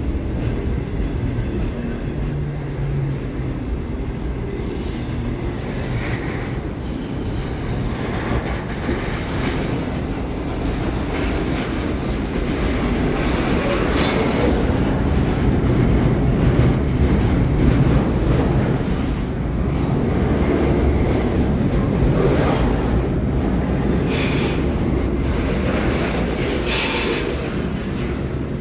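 A freight train rumbles past close by, steady and loud.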